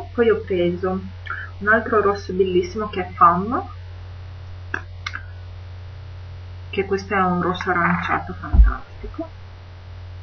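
A young woman talks calmly and close to a microphone.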